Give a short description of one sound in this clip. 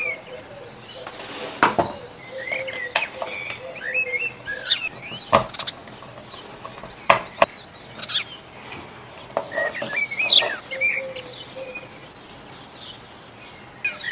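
A screwdriver scrapes and clicks against small screws.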